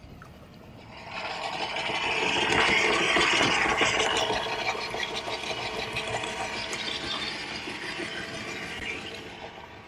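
Water splashes and rushes against the bow.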